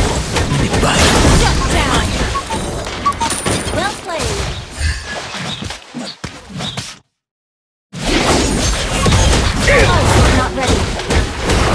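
Video game spells whoosh and crackle in a busy battle.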